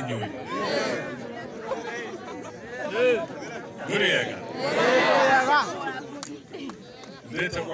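A middle-aged man speaks loudly and with animation through a microphone and loudspeakers outdoors.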